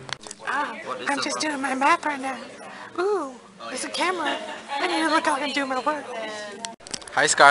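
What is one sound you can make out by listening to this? A teenage girl talks nearby.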